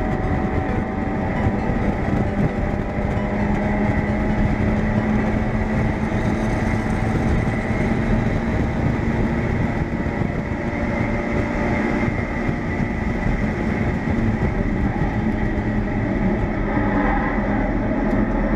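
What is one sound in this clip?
Wind buffets loudly around an open car cockpit.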